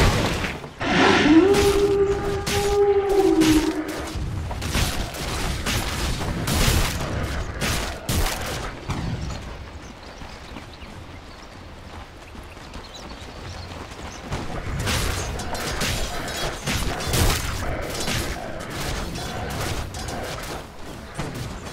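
Game battle sounds of magic spells and weapon hits clash in quick bursts.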